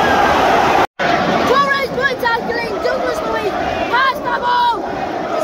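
A young boy shouts excitedly close by.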